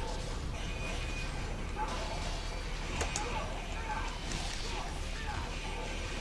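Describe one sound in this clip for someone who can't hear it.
Blows thud and crash in a fight.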